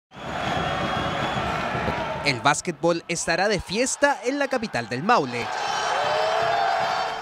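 A large crowd cheers and roars in an echoing hall.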